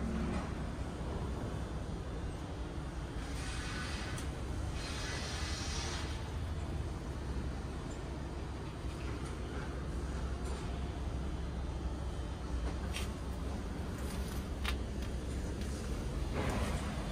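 A machine hums steadily and low.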